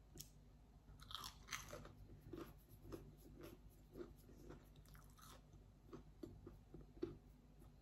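A woman chews crunchy food with her mouth close by.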